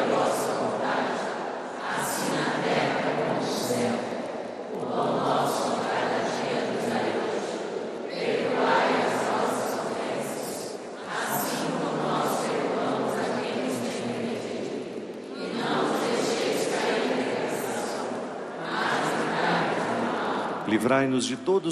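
A huge crowd sings together in a large echoing hall.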